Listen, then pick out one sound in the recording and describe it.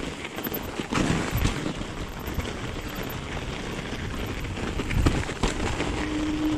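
A bicycle rattles and clunks over bumps.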